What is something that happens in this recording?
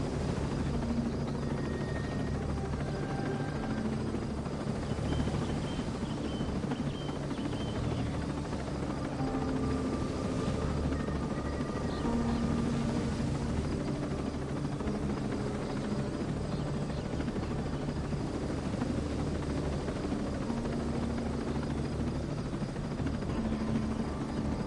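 A helicopter's rotor thumps steadily close by.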